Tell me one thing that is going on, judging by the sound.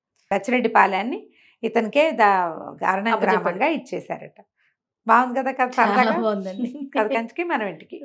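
A middle-aged woman speaks calmly and warmly into a microphone.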